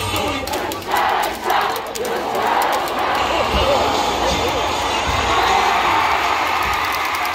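A large stadium crowd cheers and chants loudly outdoors.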